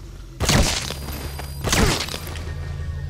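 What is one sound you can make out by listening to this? Two loud gunshots ring out, each with a short echo.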